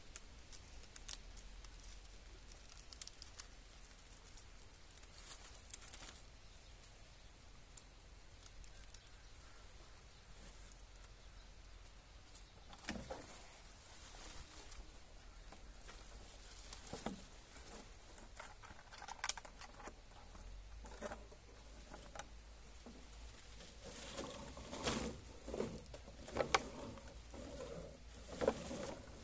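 Gloved hands rustle and scrape against a wooden post.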